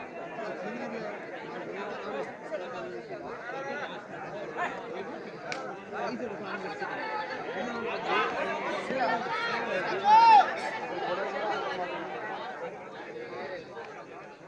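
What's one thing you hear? A large outdoor crowd of men chatters and shouts.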